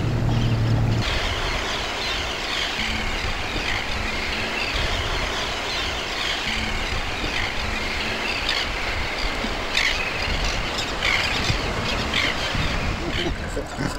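Seabirds call and cry in a large flock.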